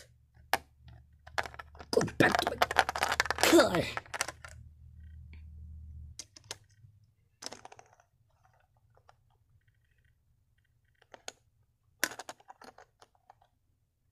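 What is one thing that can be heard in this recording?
Small plastic toy pieces click and tap together.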